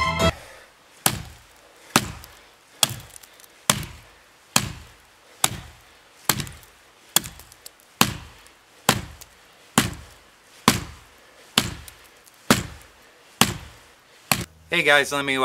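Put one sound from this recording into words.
An axe chops into wood with sharp, steady blows.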